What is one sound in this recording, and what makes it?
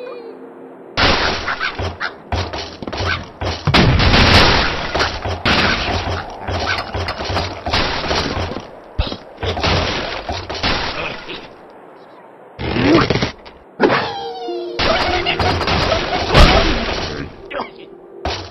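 Wooden blocks crash, splinter and topple.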